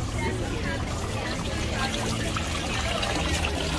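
Water trickles and splashes from a small fountain into a basin.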